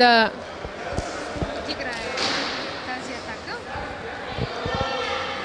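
A volleyball thumps off hands and the floor.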